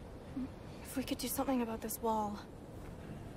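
A young woman speaks calmly and quietly.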